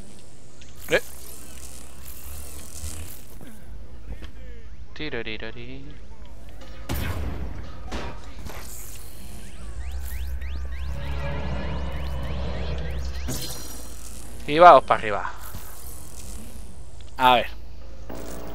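Electric energy crackles and whooshes in bursts.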